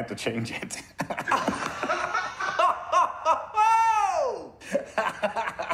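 A man laughs heartily over an online call.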